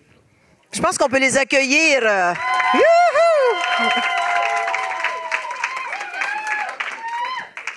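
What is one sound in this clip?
A crowd claps and cheers in a room.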